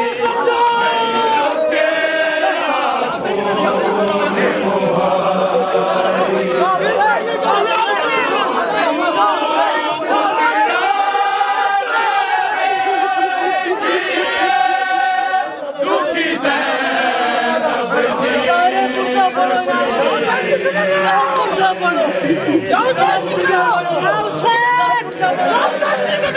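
A crowd of men beat their chests in a steady rhythm.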